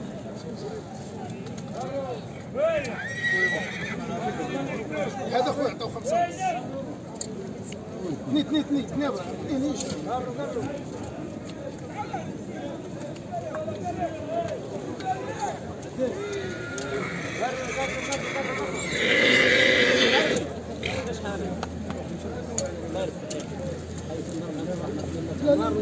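A crowd of men talks and calls out all around, outdoors.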